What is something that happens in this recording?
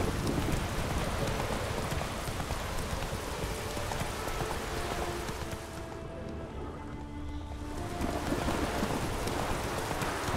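A horse gallops, its hooves pounding on a dirt path.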